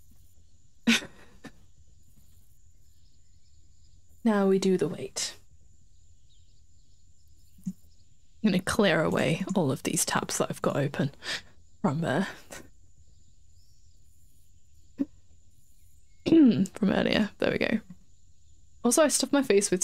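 A young woman talks with animation, close to a microphone, in short bursts.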